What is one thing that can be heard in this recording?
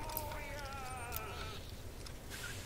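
A metal lock pick scrapes and clicks inside a lock.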